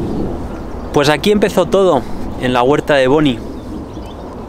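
A man speaks calmly and close by outdoors.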